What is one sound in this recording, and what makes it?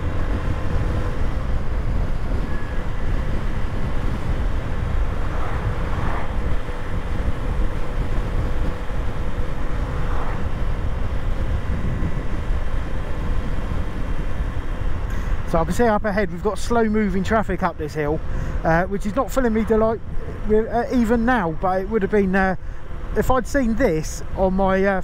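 Wind rushes and buffets loudly past the rider.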